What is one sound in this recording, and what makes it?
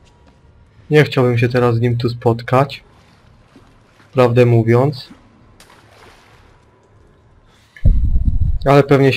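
A young man talks loudly and animatedly into a close microphone.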